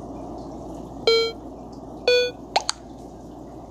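Game tones chime as the votes are revealed.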